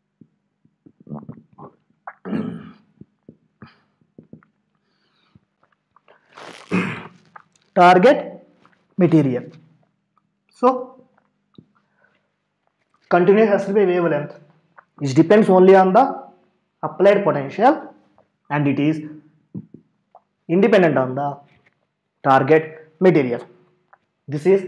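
A man explains calmly and clearly.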